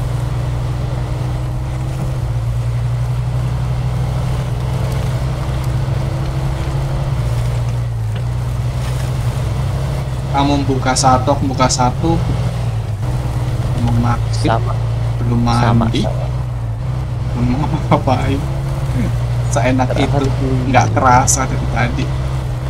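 A pickup truck's engine drones steadily as it drives over muddy ground.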